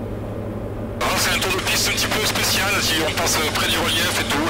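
An older man talks over a headset intercom.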